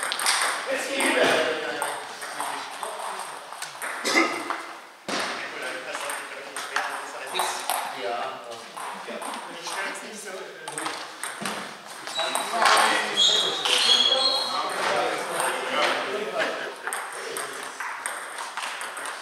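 A table tennis ball clicks off paddles and a table in a large echoing hall.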